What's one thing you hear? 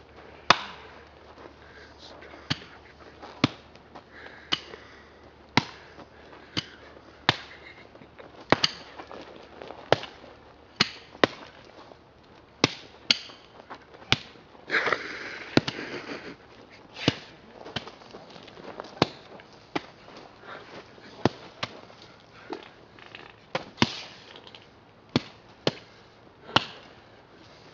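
Pickaxes strike hard ground again and again in sharp thuds.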